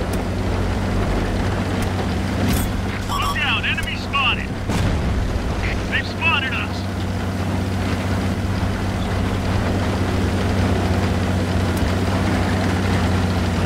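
Tank tracks clank and crunch over the ground.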